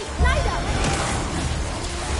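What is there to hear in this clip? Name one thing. A stream of fire roars.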